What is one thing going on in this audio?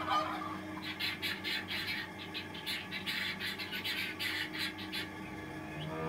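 A guinea fowl chatters with harsh, rattling calls.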